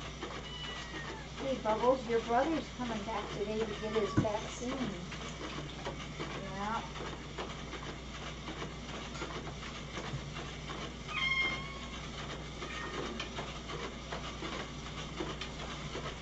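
Dishes clink and clatter.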